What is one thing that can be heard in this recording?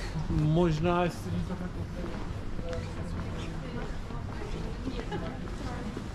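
A delivery van's engine idles close by.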